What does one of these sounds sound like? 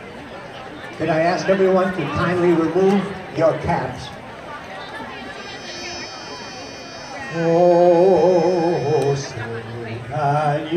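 A man sings into a microphone, amplified through loudspeakers outdoors.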